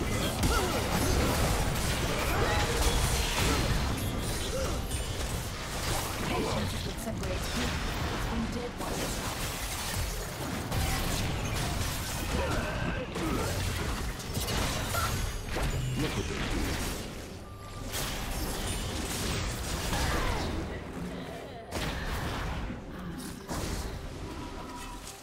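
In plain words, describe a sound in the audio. Video game combat effects whoosh, clash and burst in quick succession.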